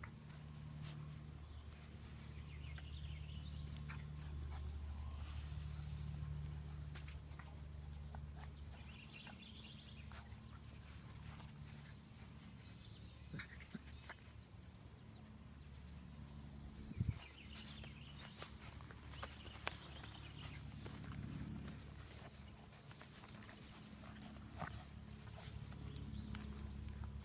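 Puppies scamper and tumble through grass with soft rustling.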